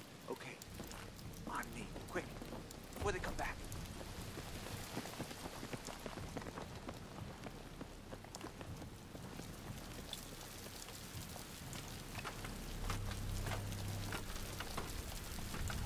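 Footsteps splash on wet ground.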